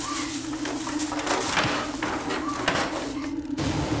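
Plastic bags rustle and crinkle as hands rummage in a drawer.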